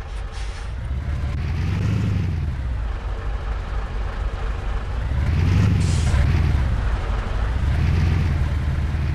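A truck's diesel engine rumbles and revs as it drives slowly.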